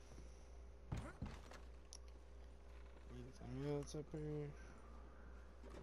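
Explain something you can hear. Footsteps thud on wooden boards.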